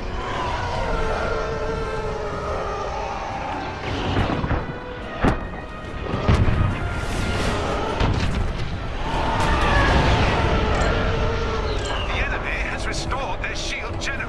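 Laser cannons fire in quick bursts.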